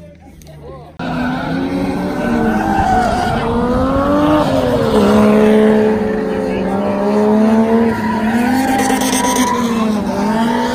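A car engine revs hard as a car drifts on a track.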